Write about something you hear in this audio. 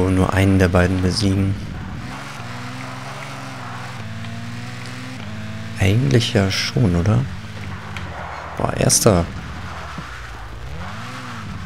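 A racing car engine hums steadily and changes pitch as the car speeds up and slows down.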